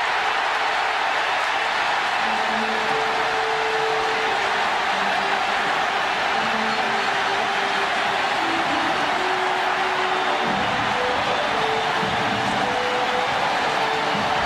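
A huge stadium crowd roars and cheers loudly without a break.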